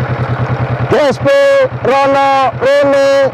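A motorcycle engine revs up in short bursts.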